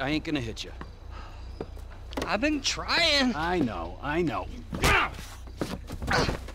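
A man groans and cries out in pain close by.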